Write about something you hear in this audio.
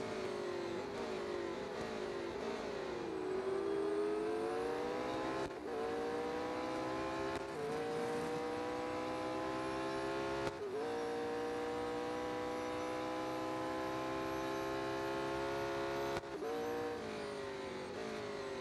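A racing car engine roars, revving up through the gears as it speeds along.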